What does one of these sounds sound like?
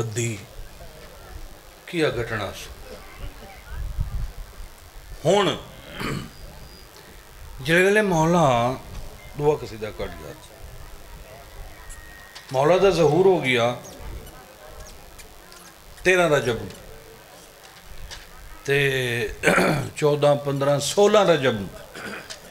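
A man recites in a loud, drawn-out chanting voice into a microphone, in short bursts with pauses.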